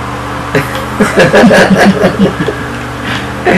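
Young men laugh close to a microphone.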